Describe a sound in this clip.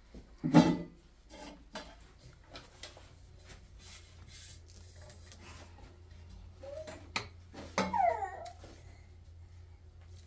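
Metal dishes clink and clatter.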